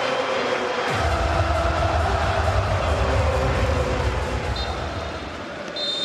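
A stadium crowd roars suddenly.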